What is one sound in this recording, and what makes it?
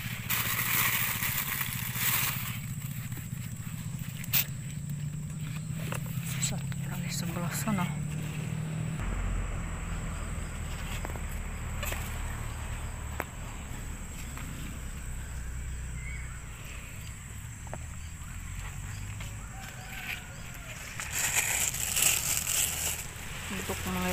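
A plastic bag crinkles close by.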